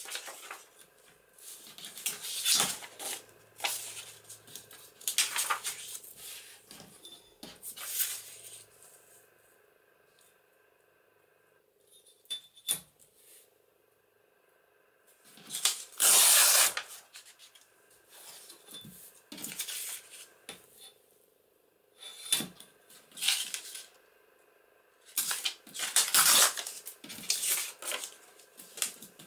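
Sheets of paper rustle and slide.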